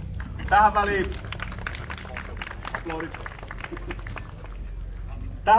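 A small crowd claps and cheers.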